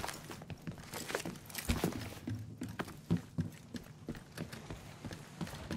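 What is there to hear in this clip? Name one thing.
Heavy footsteps thud quickly on a hard floor.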